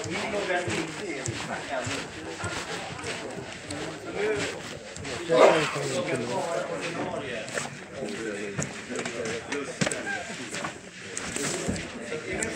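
Many adults chatter at once in a room with some echo.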